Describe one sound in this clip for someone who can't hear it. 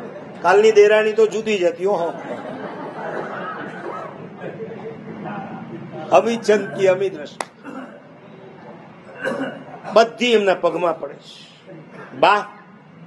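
A middle-aged man speaks calmly and expressively into a microphone.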